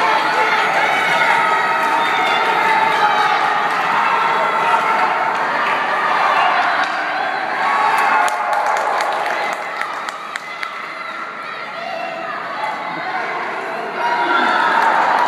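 A crowd of spectators chatters and cheers in a large echoing arena.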